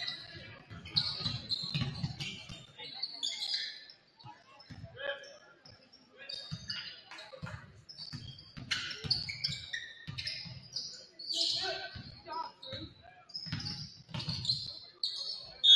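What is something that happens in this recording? A basketball bounces on a wooden court in an echoing gym.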